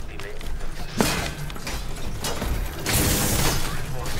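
Metal blades clash and scrape in a fight.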